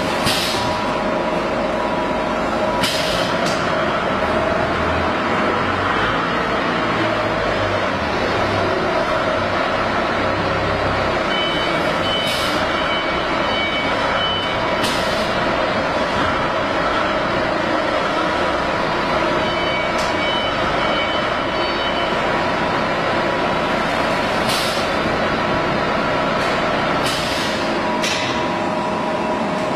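A packaging machine hums and whirs steadily.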